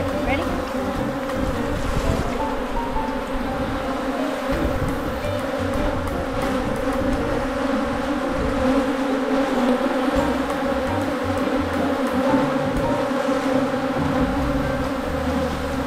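Bees buzz loudly and steadily close by.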